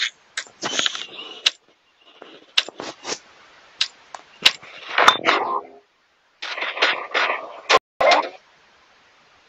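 Short game clicks and clacks sound as building pieces snap into place.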